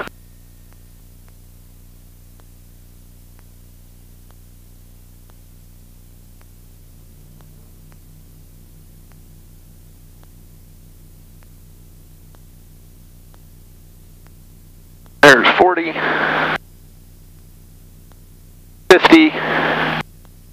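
A small plane's engine drones steadily in the cabin.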